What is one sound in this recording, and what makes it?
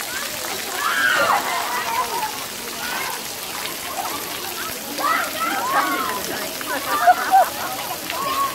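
Small water jets spray and splash softly.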